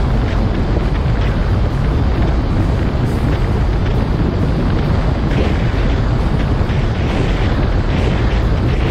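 A boat engine drones steadily at speed.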